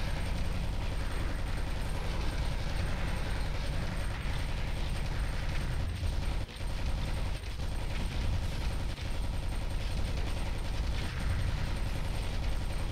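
Rapid gunfire rattles without pause.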